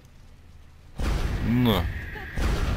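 A creature screeches with a rising and falling cry.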